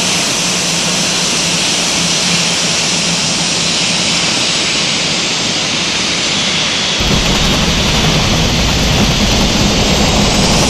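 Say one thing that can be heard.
Jet engines roar steadily close by.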